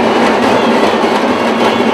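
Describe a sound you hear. A drum is beaten with quick strokes.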